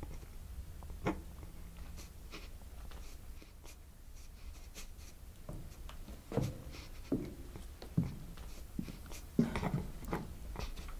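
A wooden chair creaks and knocks.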